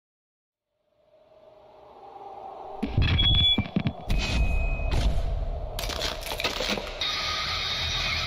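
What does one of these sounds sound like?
Loud electronic music plays from a boombox.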